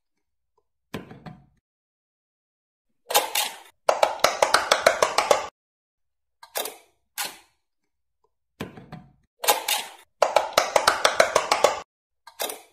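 An electronic toy plays short, bright bursts of beeping sounds.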